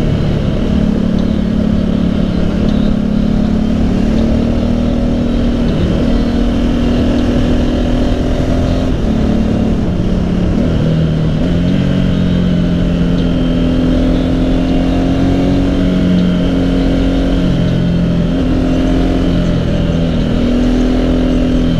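A motorcycle engine hums steadily, rising and falling in pitch as the rider shifts gears.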